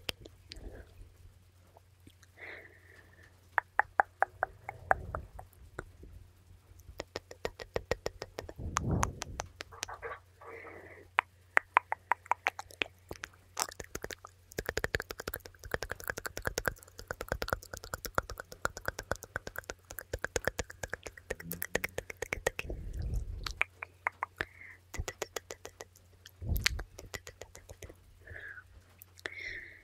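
Hands rustle and brush close to a microphone.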